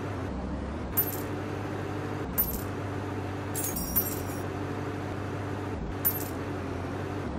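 Short bright chimes ring out now and then.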